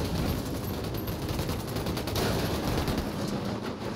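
A motorcycle crashes with a metallic scrape.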